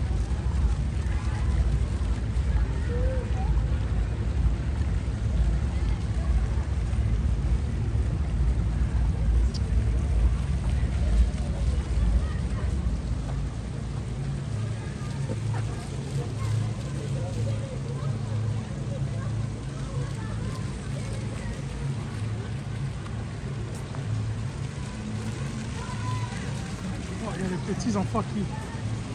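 Small fountains bubble and splash in a shallow pool outdoors.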